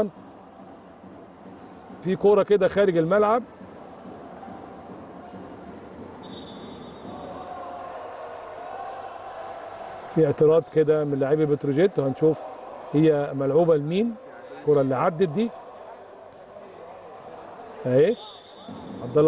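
A volleyball thuds as players hit it in a large echoing hall.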